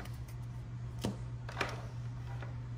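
A card pack taps softly on a table.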